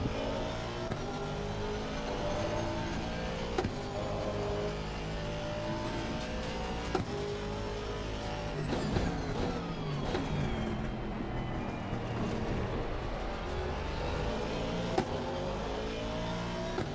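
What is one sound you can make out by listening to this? A racing car engine roars, rising and falling in pitch as the gears shift.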